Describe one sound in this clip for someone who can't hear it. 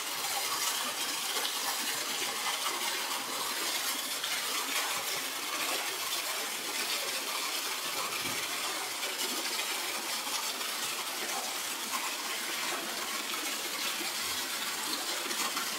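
A plastic ball knocks and splashes in the water.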